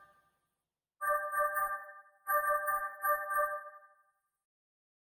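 Short chiming blips sound as menu items are picked.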